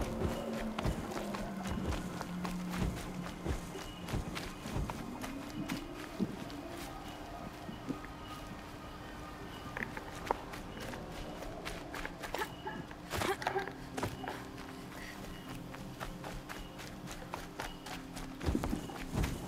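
Quick footsteps run through grass and over dirt.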